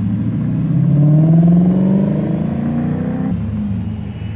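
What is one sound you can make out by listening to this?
A sports car engine revs loudly as the car pulls away.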